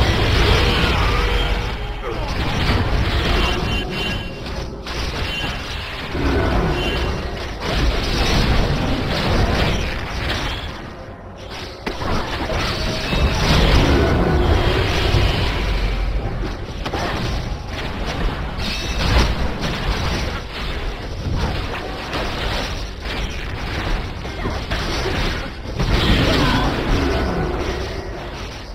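Spell effects burst and whoosh in a fast game battle.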